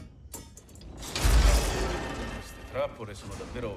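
A swirling portal roars briefly.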